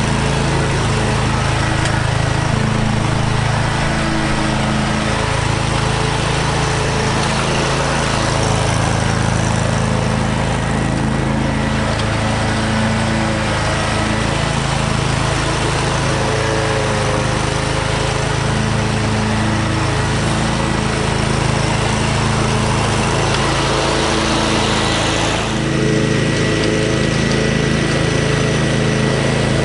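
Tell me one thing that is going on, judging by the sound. A lawn mower engine runs with a steady, loud drone.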